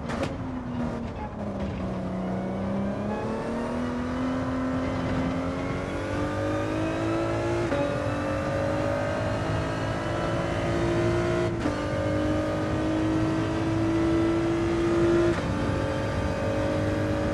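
A racing car engine roars, rising in pitch as it speeds up and dropping briefly with each gear change.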